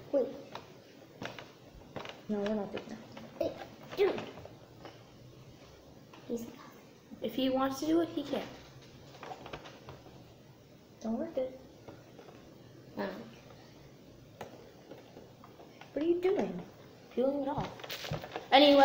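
Cardboard packaging rustles and taps as a boy handles a box.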